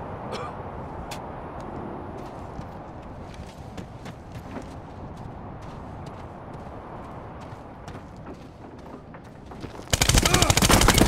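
Footsteps crunch on snowy gravel.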